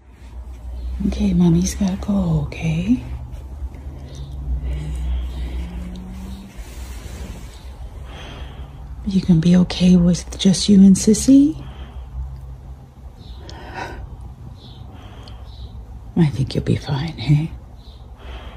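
A dog whines and whimpers close by.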